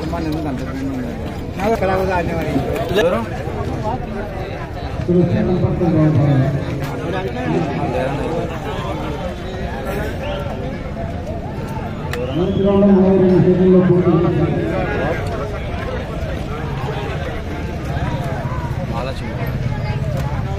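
A large outdoor crowd murmurs and chatters in the distance.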